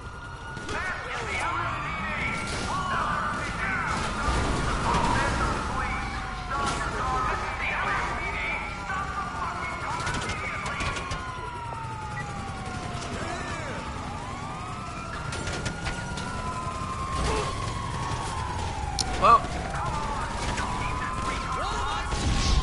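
A car engine revs as a vehicle drives.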